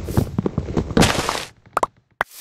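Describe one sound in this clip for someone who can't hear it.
A wooden block breaks with a crunch.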